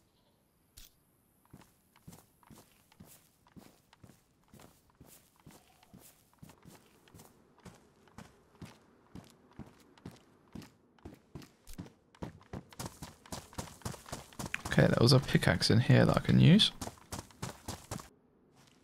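Footsteps walk steadily over grass and hard ground.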